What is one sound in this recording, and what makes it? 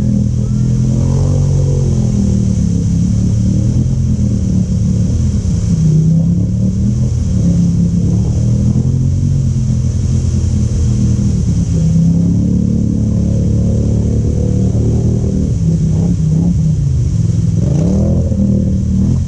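Mud splashes and churns under spinning tyres.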